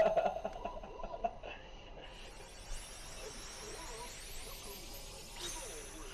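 Magical spell effects shimmer and chime with bright sparkling sounds.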